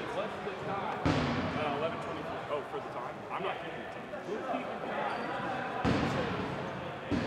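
Several young men talk casually nearby in a large echoing hall.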